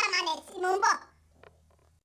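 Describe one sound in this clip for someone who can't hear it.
A woman speaks loudly and briefly, close to the microphone.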